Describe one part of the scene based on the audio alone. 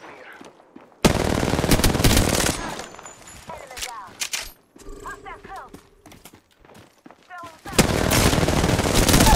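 Rapid gunfire bursts loudly at close range.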